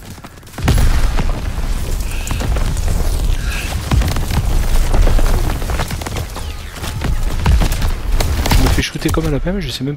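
Gunfire and explosions roar loudly and continuously.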